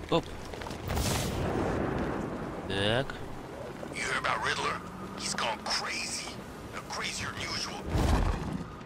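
Wind rushes past during a fast glide.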